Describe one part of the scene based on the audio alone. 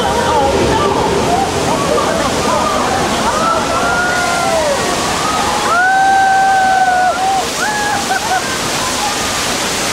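Water rushes and churns loudly in a strong surge.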